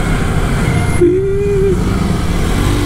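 A horn honks briefly.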